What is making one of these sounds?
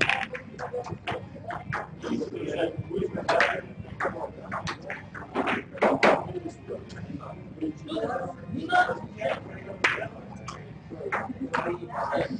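Snooker balls click together as a cue strikes.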